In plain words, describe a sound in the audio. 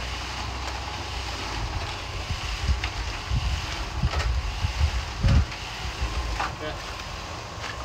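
Tools knock and scrape close by.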